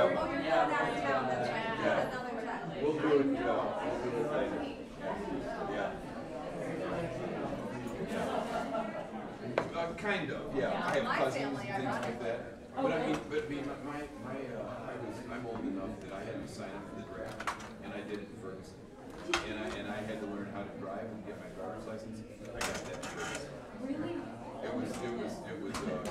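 A crowd of men and women chatter in a large room.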